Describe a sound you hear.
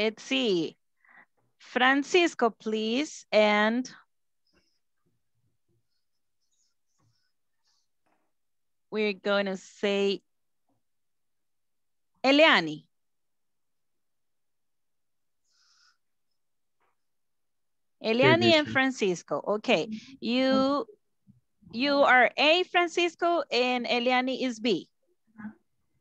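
A woman speaks through an online call, in short bursts with pauses.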